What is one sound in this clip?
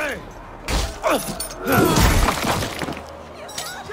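A man cries out in pain up close.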